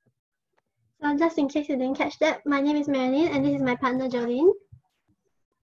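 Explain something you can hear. A young woman speaks calmly over an online call, presenting.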